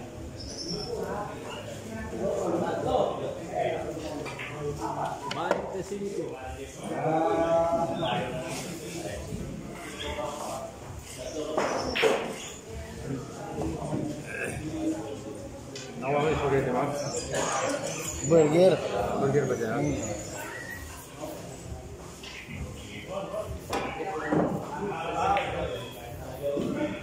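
Men talk casually nearby in an echoing room.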